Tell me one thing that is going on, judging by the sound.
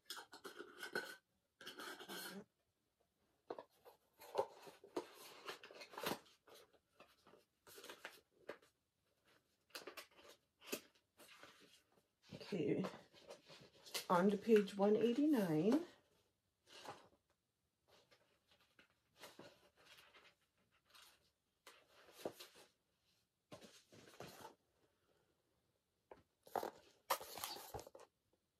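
Book pages rustle and flip.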